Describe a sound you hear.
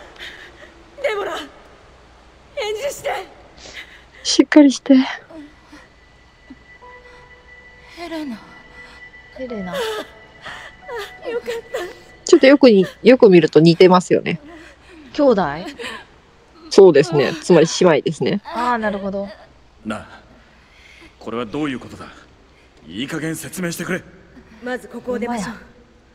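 A young woman calls out urgently and with emotion.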